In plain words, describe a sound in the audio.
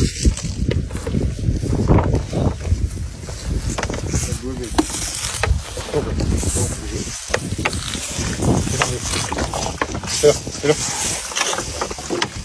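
A baby elephant slurps and sucks milk from a bottle.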